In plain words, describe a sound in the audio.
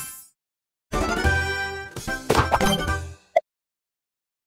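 A short game jingle plays.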